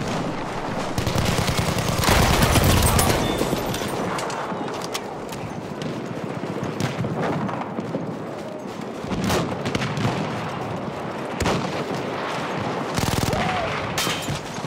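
Explosions rumble nearby.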